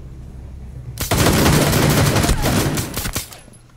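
A pistol fires a rapid burst of shots.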